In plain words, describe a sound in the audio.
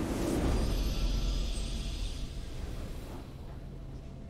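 A triumphant game fanfare blares loudly and then fades.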